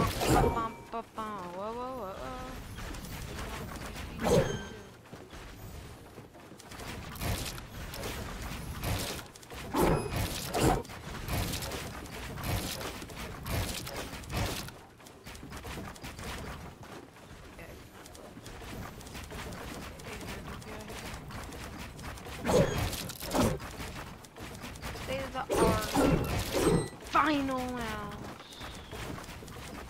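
Building pieces snap into place with quick clicks and thuds.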